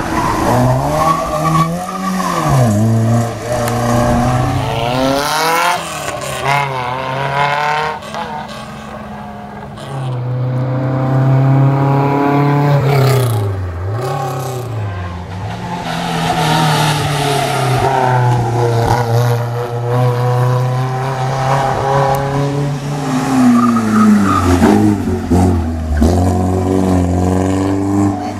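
A rally car engine roars loudly, revving up and down through gear changes.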